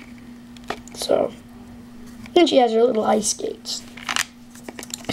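Small plastic toy parts click and snap together.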